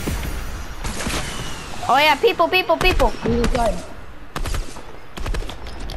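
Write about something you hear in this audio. Sharp gunshots crack in quick bursts.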